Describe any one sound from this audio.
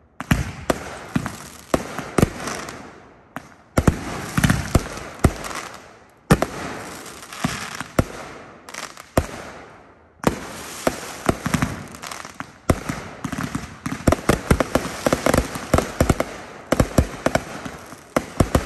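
Fireworks bang and crackle in rapid bursts outdoors.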